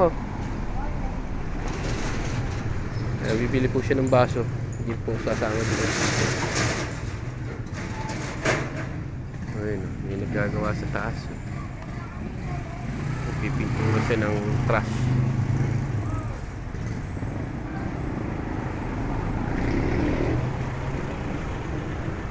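Motorcycle engines rumble past nearby.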